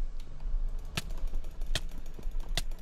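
A sword strikes with sharp thuds.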